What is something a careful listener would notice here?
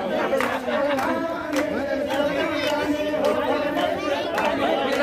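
A crowd of men and women chatter and sing loudly nearby.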